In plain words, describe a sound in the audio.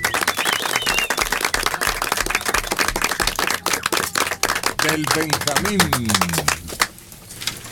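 A group of people applaud loudly.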